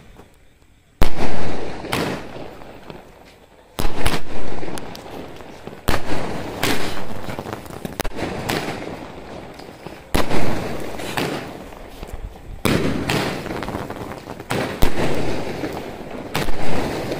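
Firework sparks crackle overhead.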